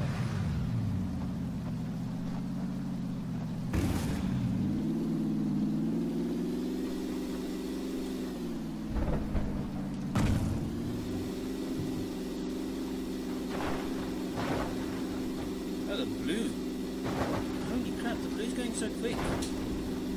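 A car engine drones steadily, its pitch rising and falling with speed.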